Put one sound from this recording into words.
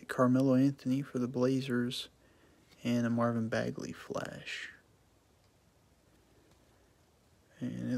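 Trading cards slide against each other as they are shuffled.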